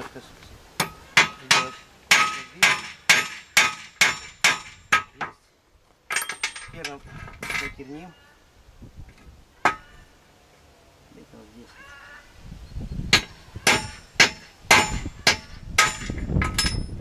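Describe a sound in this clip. A hammer strikes metal in quick ringing blows.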